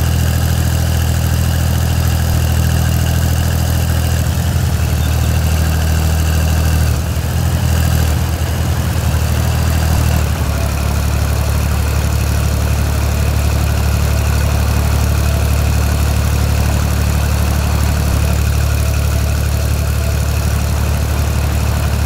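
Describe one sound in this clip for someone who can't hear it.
A tractor engine rumbles steadily with a low drone.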